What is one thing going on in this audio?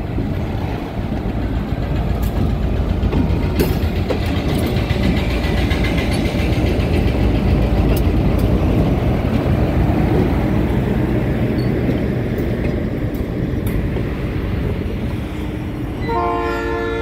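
A diesel locomotive rumbles and clatters past up close.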